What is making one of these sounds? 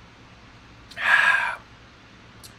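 A man exhales loudly after a sip.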